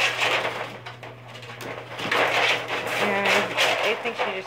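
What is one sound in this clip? A rabbit rustles through dry hay.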